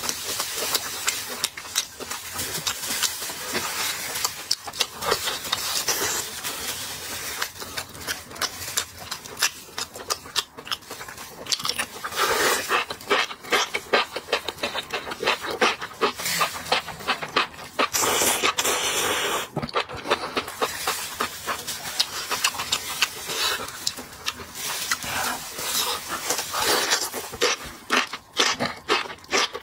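A young man chews and smacks loudly close to a microphone.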